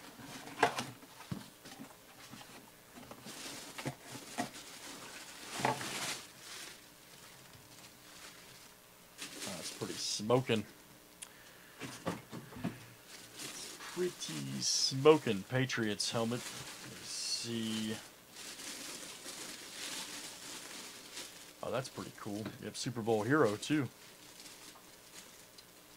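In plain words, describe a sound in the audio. A plastic bag crinkles and rustles under hands.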